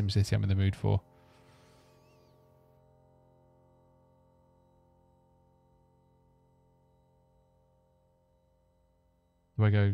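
A piano chord rings out and slowly fades.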